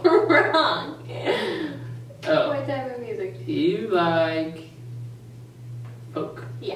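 A young woman talks and laughs cheerfully, close by.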